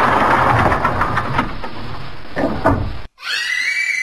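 A metal gate swings shut.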